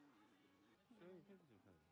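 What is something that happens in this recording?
Shoppers' voices murmur nearby.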